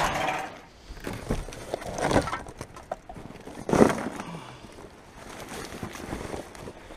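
Plastic bottles and wrappers rustle and crinkle as gloved hands dig through rubbish.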